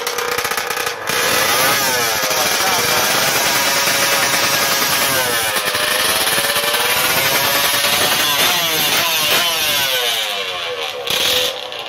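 A motorcycle engine revs loudly up and down, close by.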